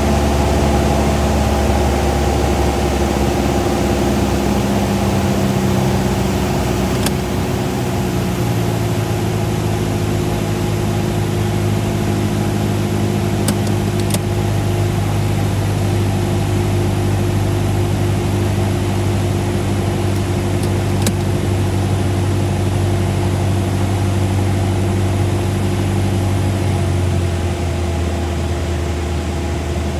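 A small plane's propeller engine drones loudly and steadily from inside the cockpit.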